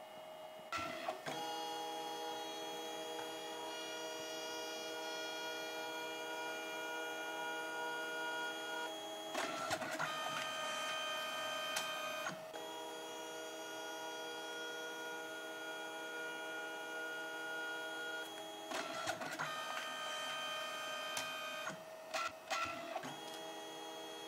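A small printer's motor whirs steadily with a high hum.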